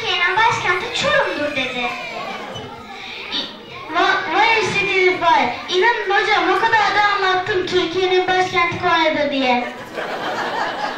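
A young boy speaks with animation through a microphone in an echoing hall.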